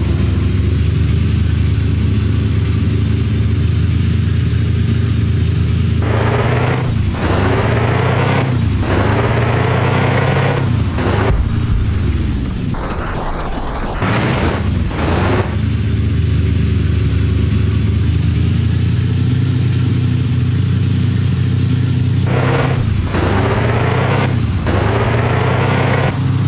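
A car engine hums steadily and revs up and down as it speeds up and slows.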